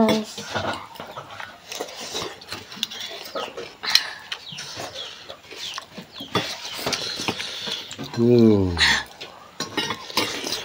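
A young man slurps noodles loudly.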